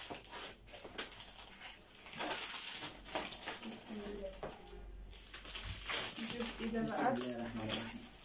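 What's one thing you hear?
Plastic wrapping rustles and crinkles close by.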